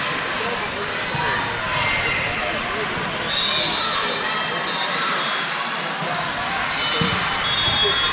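A volleyball is struck with a thud.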